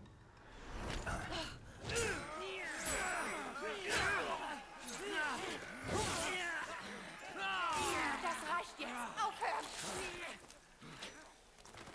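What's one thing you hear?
A man grunts and shouts in the struggle.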